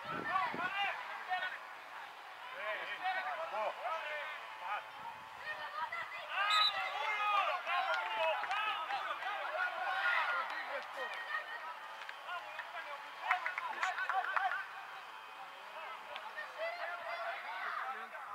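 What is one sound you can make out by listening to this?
Men shout to each other outdoors on a football pitch.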